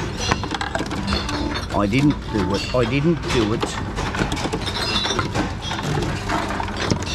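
Glass bottles clink against each other.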